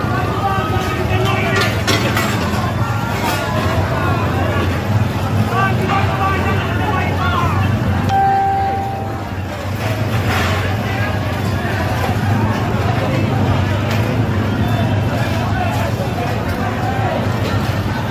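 A large fire roars and crackles.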